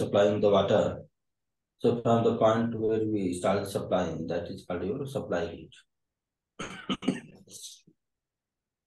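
A man speaks calmly through an online call, explaining.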